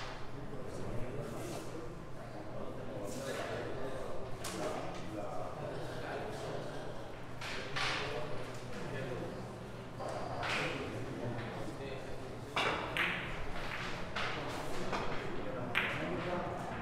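Billiard balls click sharply against each other.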